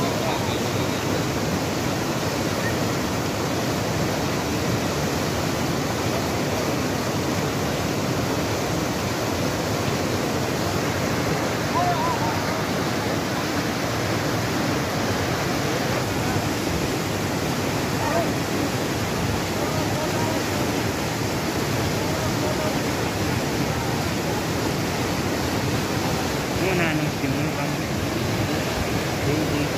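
A fast river rushes over rocks.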